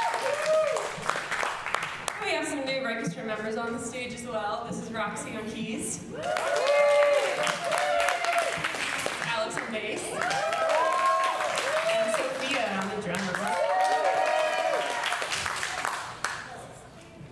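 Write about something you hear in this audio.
Young women sing together through microphones in a large hall.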